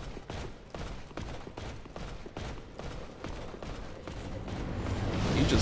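Armoured footsteps thud quickly on stone.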